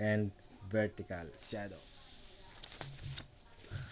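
A sheet of paper rustles as it slides across a flat surface.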